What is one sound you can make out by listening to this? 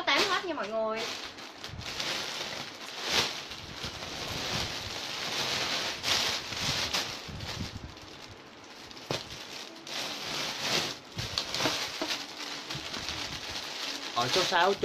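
Fabric rustles and swishes.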